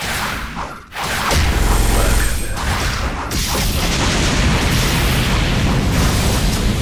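A fiery blast roars and explodes with a deep rumble.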